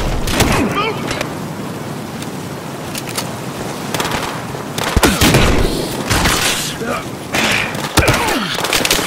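Gunshots bang loudly, a few times.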